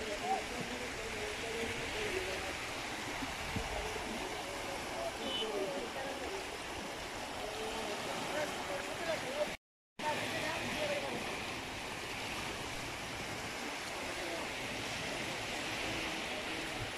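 Small waves wash gently over rocks in shallow water.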